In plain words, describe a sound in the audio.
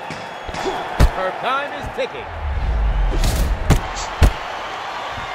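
Boxing gloves thud against a body in sharp punches.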